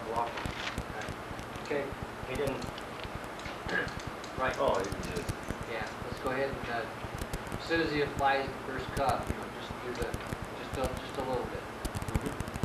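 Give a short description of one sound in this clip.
A man talks calmly, explaining.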